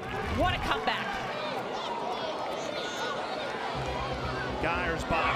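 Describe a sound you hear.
A crowd cheers and shouts in an open-air stadium.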